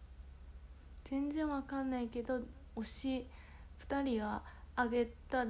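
A young woman speaks close up, with animation.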